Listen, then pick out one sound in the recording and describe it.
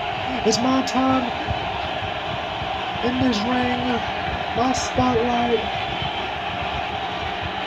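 A large crowd murmurs and cheers steadily.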